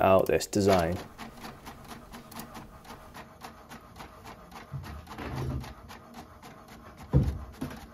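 A printer whirs and clicks rapidly as it prints a page.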